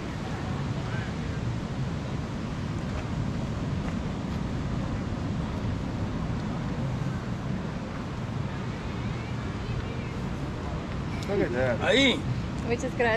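Waves wash onto a shore in the distance, with a steady low rumble.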